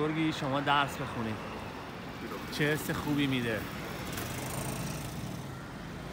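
A motor scooter passes close by.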